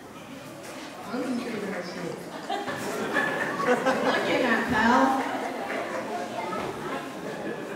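A boy speaks through a microphone and loudspeaker.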